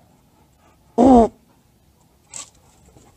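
A dog barks loudly nearby.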